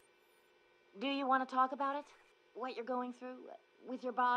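A woman speaks softly and with concern.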